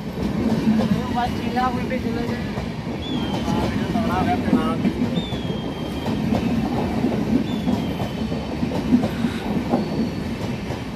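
A passenger train rumbles and clatters steadily along the rails close by.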